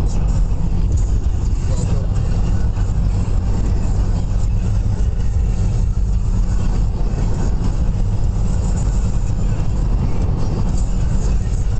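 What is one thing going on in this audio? Tyres roar steadily on a motorway.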